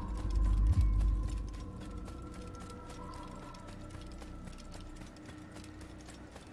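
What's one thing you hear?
Quick footsteps run over dirt and stones.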